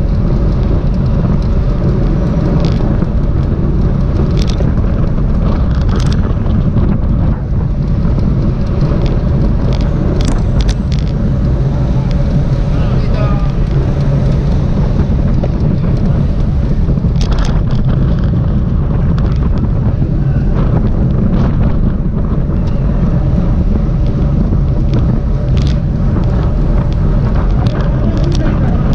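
Bicycle wheels hum on the road.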